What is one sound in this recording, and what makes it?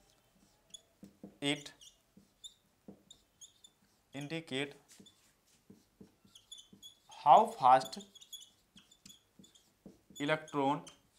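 A man speaks calmly, in short phrases, close by.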